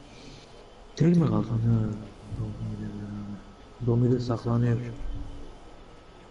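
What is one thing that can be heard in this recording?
A man talks casually close to a microphone.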